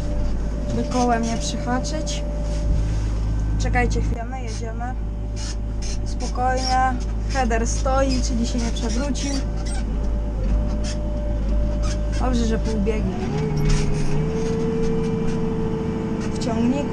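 A tractor engine rumbles steadily nearby, heard from inside the cab.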